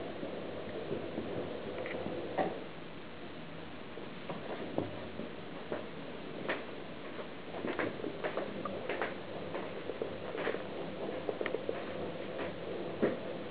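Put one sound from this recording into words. A kitten pounces and scrabbles on a soft blanket.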